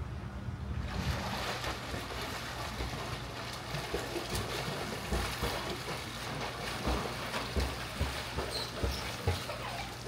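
Water splashes in an open-air pool.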